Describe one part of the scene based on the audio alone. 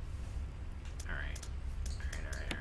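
Short electronic beeps and clicks sound in quick succession.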